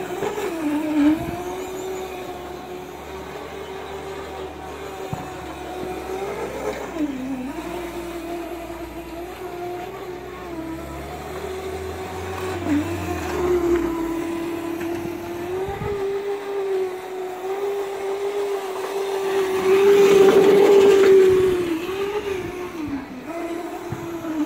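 Hard wheels rumble and scrape over a concrete court.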